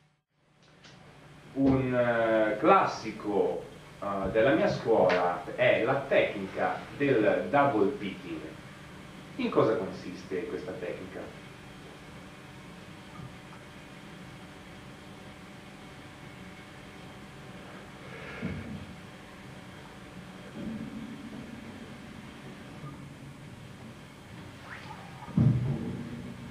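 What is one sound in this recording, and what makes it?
An electric bass guitar plays notes softly.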